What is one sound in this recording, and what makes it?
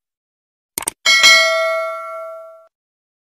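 A small bell rings and slowly fades.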